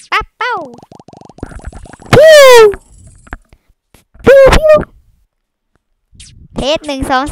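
A young woman talks and exclaims excitedly into a microphone.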